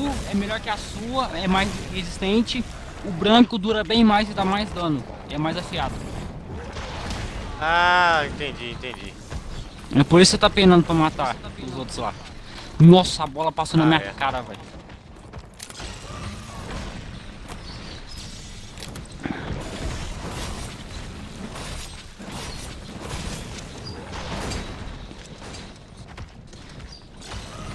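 Heavy blows and crashing ice thud and crack.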